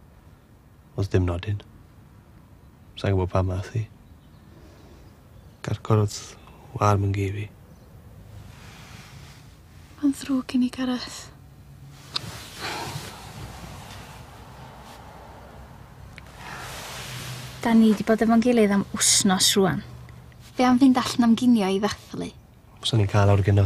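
A young woman speaks softly and sadly, close by.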